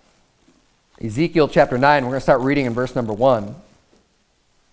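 A man reads aloud calmly through a microphone.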